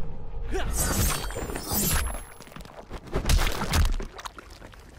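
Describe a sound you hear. Heavy blows land with wet thuds.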